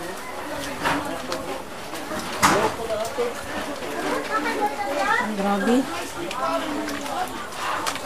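A woman talks in a calm voice a short way off.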